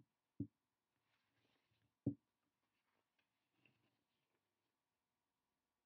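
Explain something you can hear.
Paper pages rustle as a book is turned.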